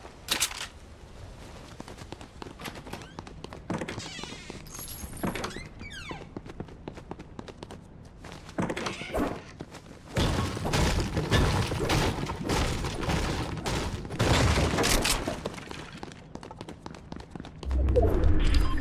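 Footsteps thud quickly across a hard floor.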